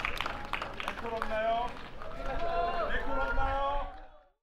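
Young men and women sing together through a loudspeaker outdoors.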